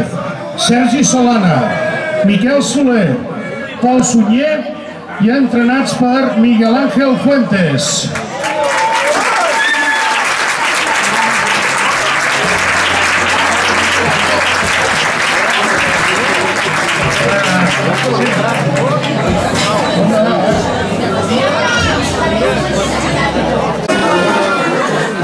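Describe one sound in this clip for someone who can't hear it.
A man speaks loudly over a loudspeaker in the open air.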